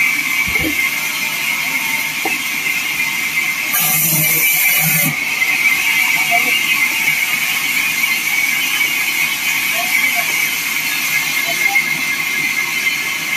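A band saw whines steadily as it cuts through wood.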